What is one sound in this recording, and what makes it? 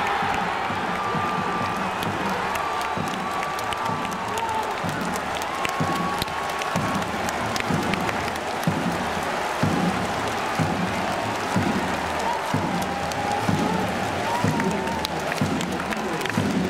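A large crowd chants and cheers steadily in an open stadium.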